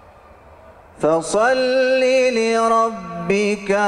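A man chants loudly in a sustained, melodic voice through a microphone, echoing in a large hall.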